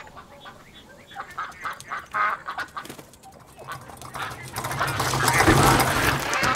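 Geese cackle and honk nearby.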